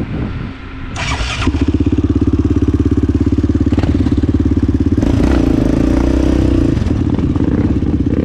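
A quad bike engine revs loudly as the bike rides off over mud.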